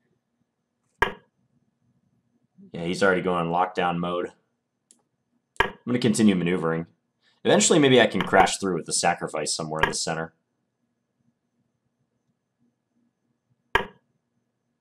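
A chess piece clicks as it is placed on the board.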